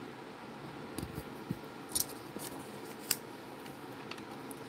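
A ceramic tile is shifted on a board with light knocks.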